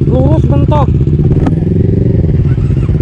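A motorcycle revs and pulls away.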